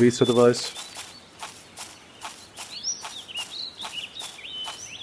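Footsteps thud quickly and evenly on soft ground.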